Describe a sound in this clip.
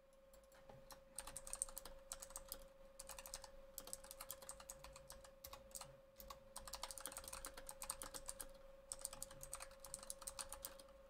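Keyboard keys click rapidly as someone types.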